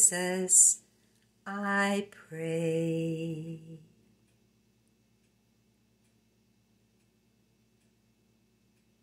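A pendulum clock ticks steadily.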